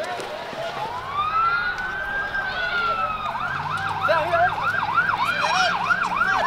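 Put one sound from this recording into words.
A siren wails, rising and falling fast.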